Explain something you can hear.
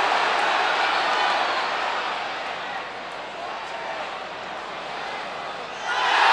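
A large stadium crowd roars and cheers, swelling loudly near the end.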